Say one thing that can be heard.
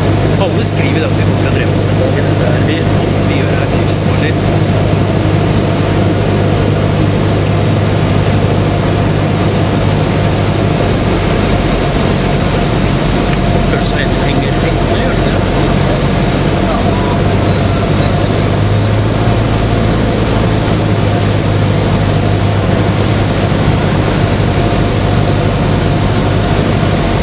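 A small plane's engine drones steadily and loudly from close by.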